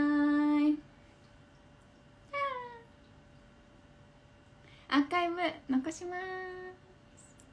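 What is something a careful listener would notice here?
A young woman speaks and sings out cheerfully close by, in short bursts.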